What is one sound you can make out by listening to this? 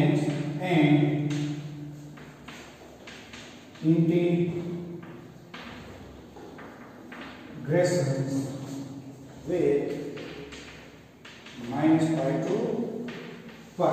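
A young man lectures calmly in short phrases, in a room with some echo.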